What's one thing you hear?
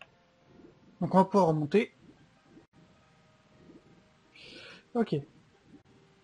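A young man speaks into a close microphone in short bursts.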